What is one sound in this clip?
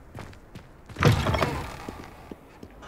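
A heavy wooden door swings open.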